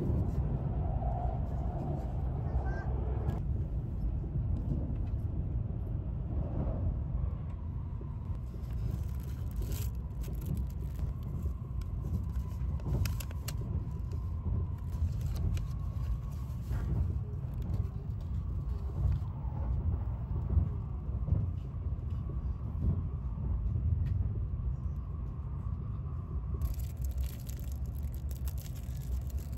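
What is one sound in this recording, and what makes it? A train rumbles steadily from inside a carriage.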